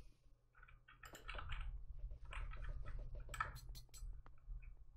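Paintball guns fire in quick, popping bursts.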